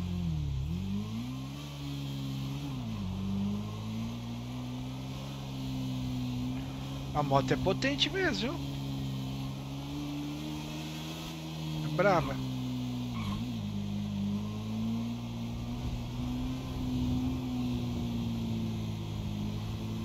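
A motorcycle engine drones steadily, rising and falling as it revs.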